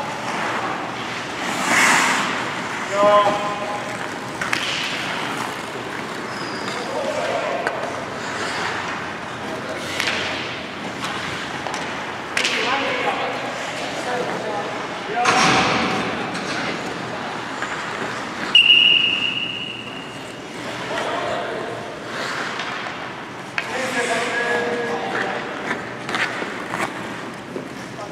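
Hockey sticks clack against the ice and the puck.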